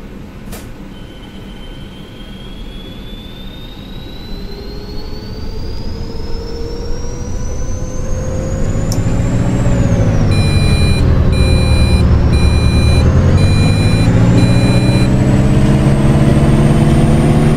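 An electric motor whines, rising in pitch as the bus gathers speed.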